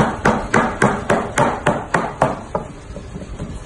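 A cleaver chops rapidly on a wooden block.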